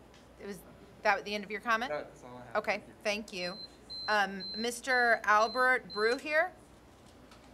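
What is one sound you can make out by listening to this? A woman speaks through a microphone in a measured tone.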